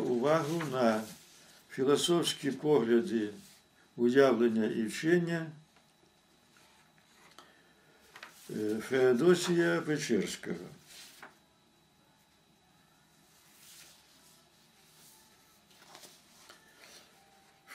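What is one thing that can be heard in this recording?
Paper rustles in an elderly man's hands.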